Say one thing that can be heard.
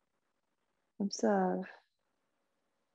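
A young woman speaks softly and calmly into a close microphone.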